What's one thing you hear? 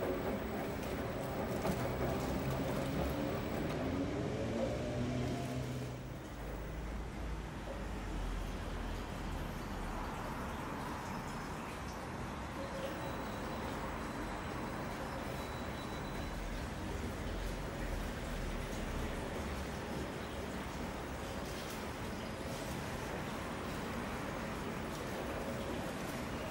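A front-loading washing machine drum turns, tumbling wet laundry with a low rumble and swish.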